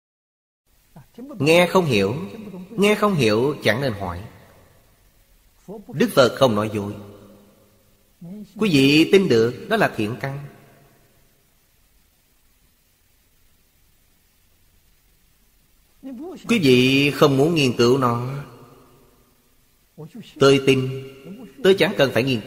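An elderly man speaks calmly close to a microphone, with pauses.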